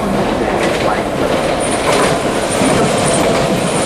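A train rumbles closer along the tracks.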